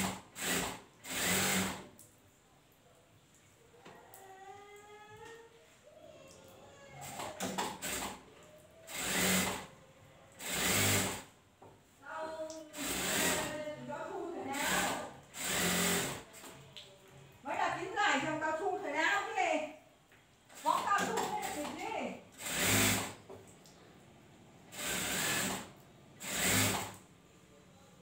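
A sewing machine runs in short bursts, whirring and stopping.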